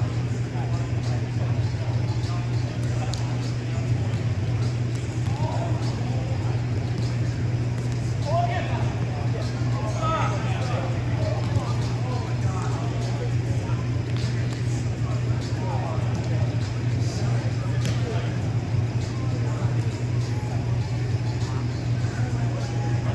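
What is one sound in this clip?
A crowd of players chatters in the background of a large echoing hall.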